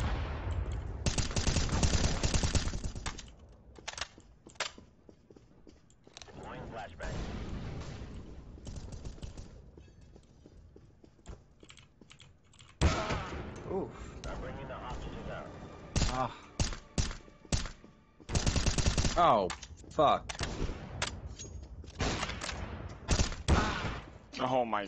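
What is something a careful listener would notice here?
Rifle shots ring out in rapid bursts.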